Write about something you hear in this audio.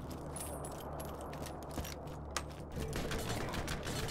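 A rifle clicks and clatters as it is reloaded.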